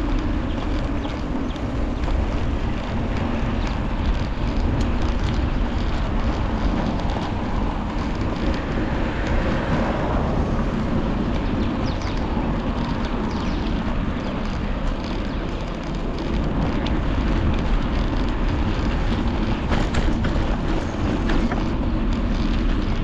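A bicycle's tyres hum and rattle on the pavement.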